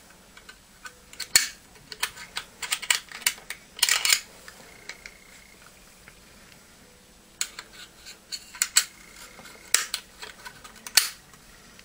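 Cloth rustles and scrapes as hands rub it.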